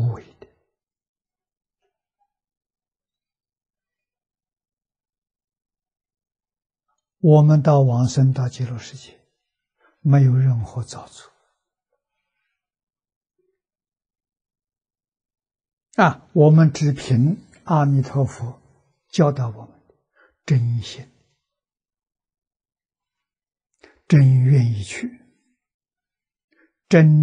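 An elderly man speaks calmly into a close microphone, in short phrases with long pauses.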